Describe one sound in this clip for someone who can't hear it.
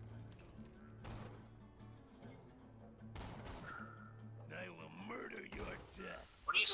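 Rifle shots ring out sharply.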